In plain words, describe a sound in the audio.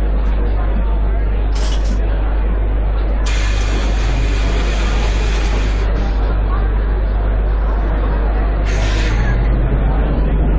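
A bus engine idles with a low, steady hum.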